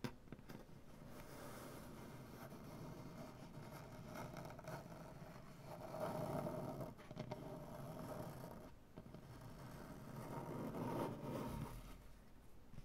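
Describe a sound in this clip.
Fingernails scratch and rub across a wooden surface.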